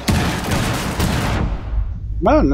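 A stun grenade goes off with a loud, harsh blast.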